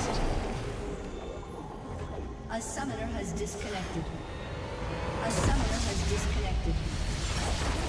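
Magical blasts and impacts crackle and boom in a game battle.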